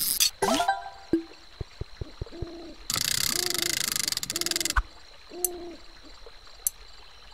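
Short electronic chimes and beeps play from a video game.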